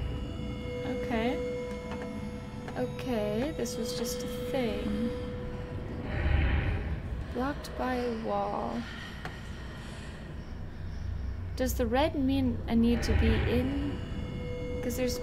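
A young woman talks calmly into a headset microphone.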